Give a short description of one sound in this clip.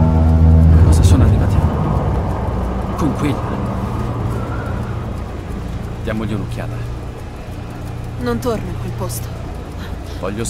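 A young woman speaks in a low, uneasy voice.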